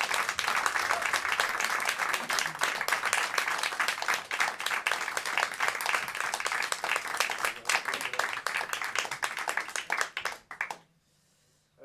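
An acoustic guitar strums loudly and fast.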